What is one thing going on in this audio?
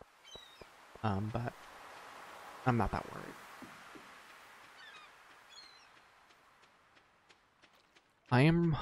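Footsteps patter softly on sand.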